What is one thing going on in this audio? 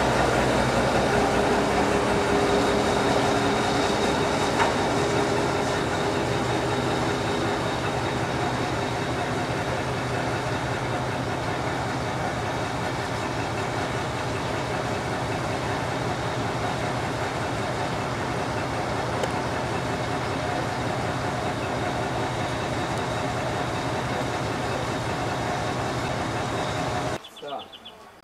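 A diesel locomotive engine rumbles steadily close by, idling loudly.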